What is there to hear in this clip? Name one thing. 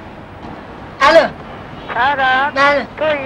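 A young boy speaks softly into a telephone up close.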